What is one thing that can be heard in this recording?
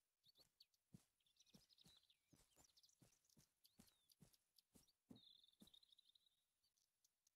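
Footsteps tread steadily over dry ground and grass.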